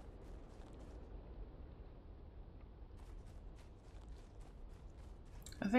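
Footsteps crunch through grass and gravel at a steady walking pace.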